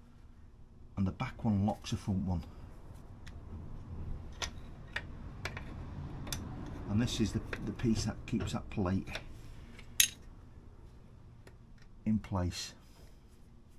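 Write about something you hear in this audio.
Metal tools click and clink against a motorcycle's rear wheel.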